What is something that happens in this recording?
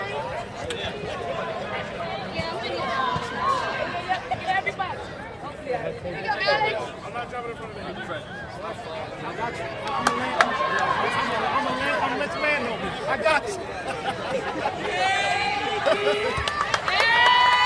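A crowd of people chatters and cheers in a large echoing arena.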